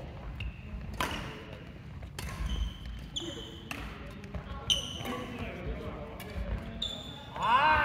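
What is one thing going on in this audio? Badminton rackets strike a shuttlecock with sharp pops in an echoing hall.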